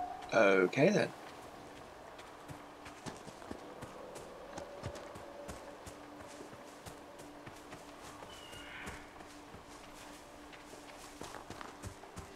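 Footsteps tread through grass and undergrowth.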